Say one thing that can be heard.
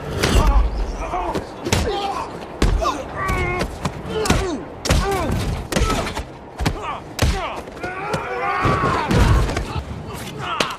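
A man grunts and groans with strain.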